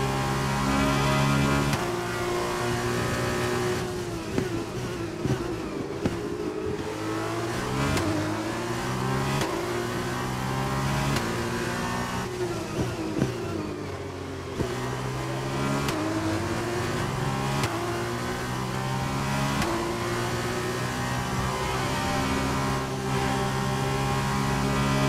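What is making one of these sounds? A racing car engine screams at high revs, rising through the gears and dropping sharply when braking.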